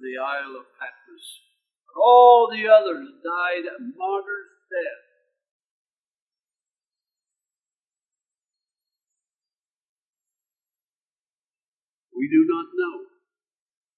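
An elderly man speaks with animation through a microphone, pausing between phrases.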